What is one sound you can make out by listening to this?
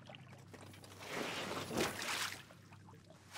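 A sword blade scrapes as it is drawn.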